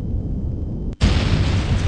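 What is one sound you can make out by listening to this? A loud explosion bursts and hisses on impact.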